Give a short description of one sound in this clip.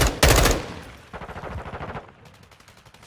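Rapid gunfire bursts from a rifle close by.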